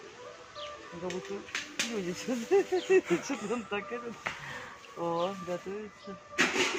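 A chimpanzee hoots and calls nearby.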